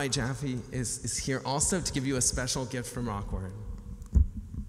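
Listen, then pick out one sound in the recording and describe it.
A man speaks into a microphone, heard through loudspeakers in a large room.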